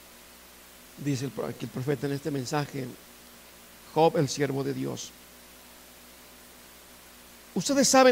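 A man reads aloud calmly through a microphone.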